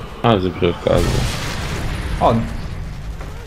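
A rifle fires a single sharp shot.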